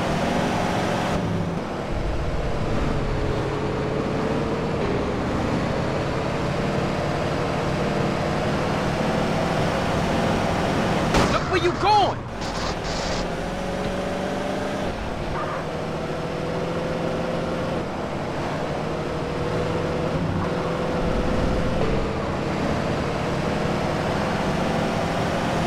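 A car engine drones steadily at speed.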